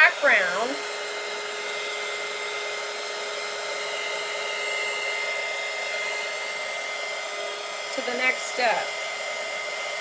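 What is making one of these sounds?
A middle-aged woman speaks briefly through a microphone.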